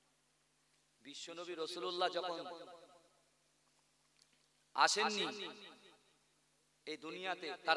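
A young man speaks with animation through a microphone, in bursts with pauses.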